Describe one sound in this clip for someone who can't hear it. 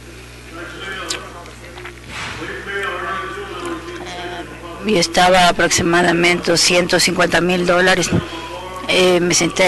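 A man speaks steadily through a microphone in a large hall.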